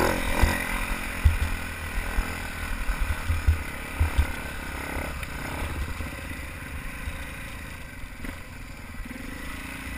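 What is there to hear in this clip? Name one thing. A dirt bike engine rumbles and revs up close.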